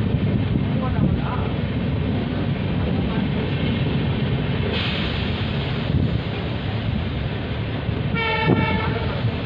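Wind rushes past an open train window.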